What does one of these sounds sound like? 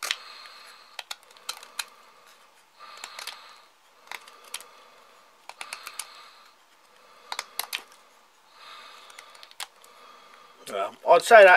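A knife shaves wood in short, scraping strokes.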